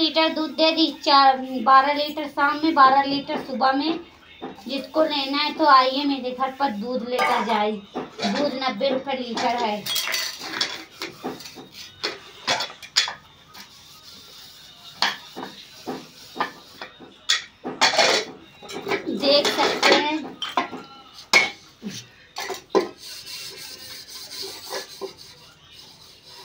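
Metal dishes clatter and clink as they are washed.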